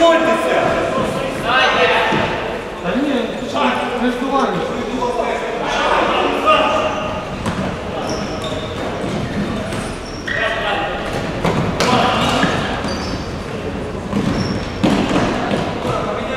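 A ball thuds as it is kicked.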